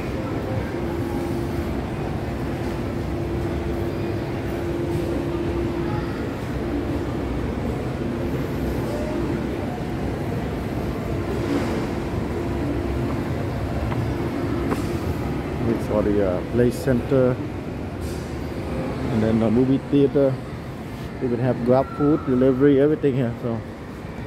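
Indistinct chatter and footsteps echo through a large indoor hall.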